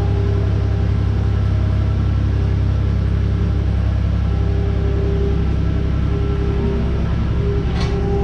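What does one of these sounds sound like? A metal gate rattles and clanks as a loader pushes it.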